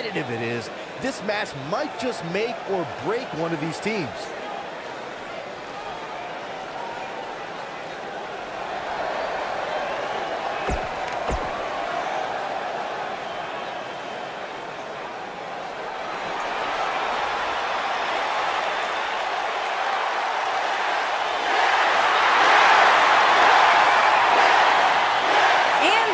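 A large crowd cheers and roars in a big echoing arena, growing louder toward the end.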